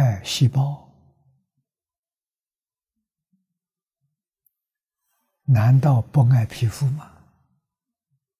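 An elderly man speaks calmly into a close microphone, in short phrases with long pauses.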